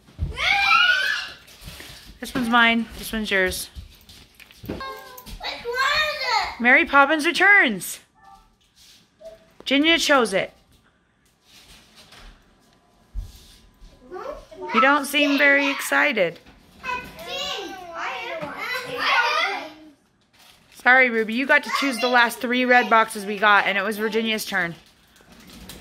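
A young girl talks excitedly and shouts close by.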